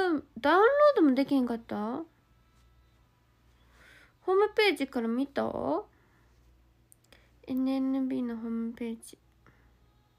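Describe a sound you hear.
A young woman speaks softly and playfully close to a microphone, in short bursts.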